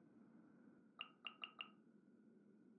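Short soft clicks tick quickly, one after another.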